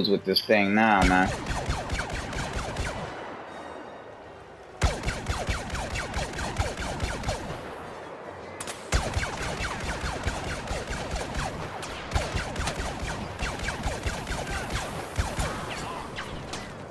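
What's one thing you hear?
Blaster rifles fire in rapid bursts of sharp zaps.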